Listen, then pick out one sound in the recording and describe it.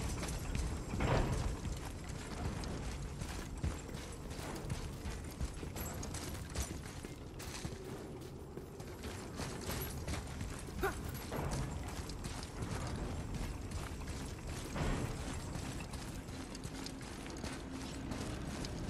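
Heavy footsteps thud on hard ground.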